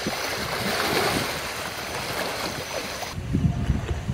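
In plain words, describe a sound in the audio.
Water splashes heavily around a large animal.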